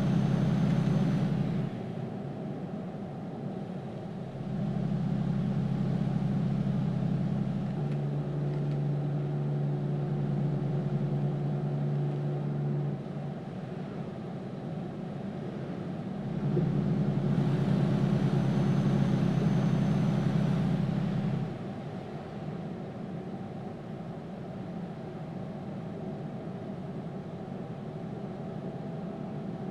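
A truck engine drones steadily, rising and falling in loudness.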